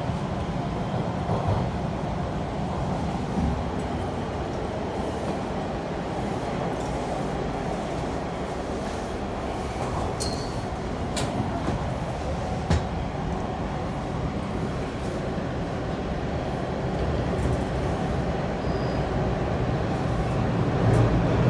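A subway train rumbles and rattles steadily along the tracks.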